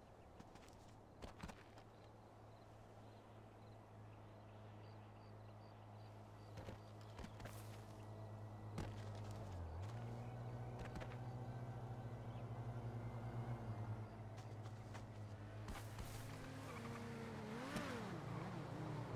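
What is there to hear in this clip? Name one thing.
Footsteps run over ground and gravel.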